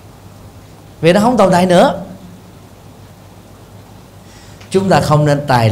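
A middle-aged man speaks calmly and warmly into a microphone.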